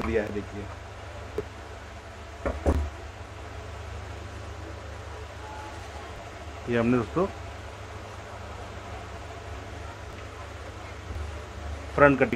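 Cloth rustles as it is lifted and moved.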